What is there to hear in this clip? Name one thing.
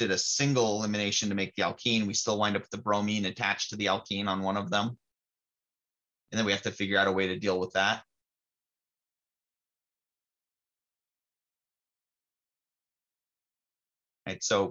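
A man explains calmly, close to a microphone.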